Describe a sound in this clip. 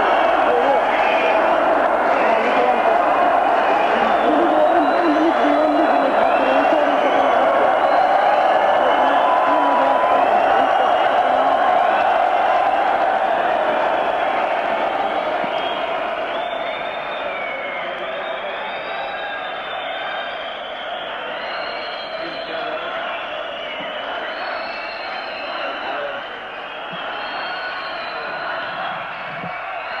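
A large crowd cheers and screams in a big echoing hall, then grows a little quieter.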